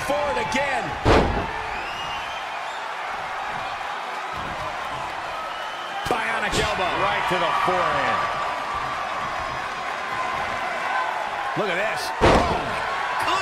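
A heavy body slams hard onto a wrestling mat with a loud thud.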